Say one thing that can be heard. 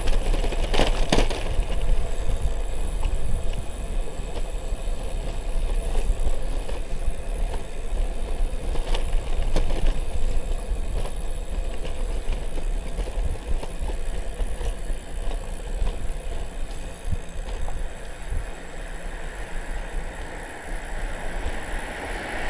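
Bicycle tyres hum on an asphalt road.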